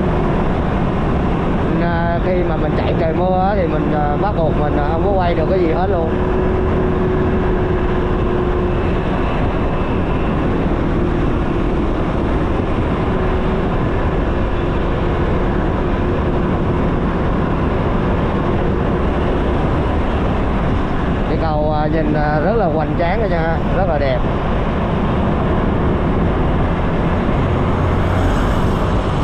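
Wind rushes loudly past a moving scooter.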